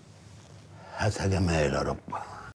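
A man speaks loudly, close by.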